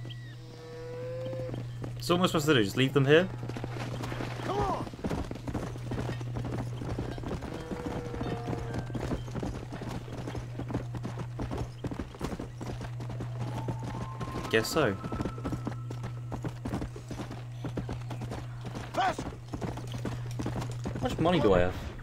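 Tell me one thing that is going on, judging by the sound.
A horse gallops with quick, thudding hoofbeats.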